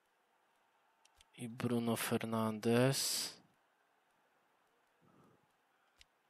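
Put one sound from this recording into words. Menu selection sounds click softly.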